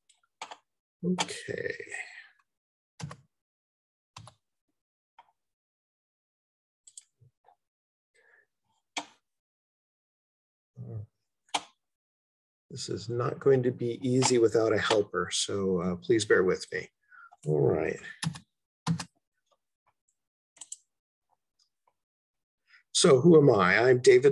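An elderly man speaks calmly, with pauses, through an online call microphone.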